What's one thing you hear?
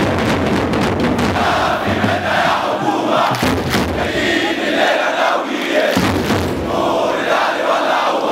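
A huge crowd chants and roars loudly outdoors.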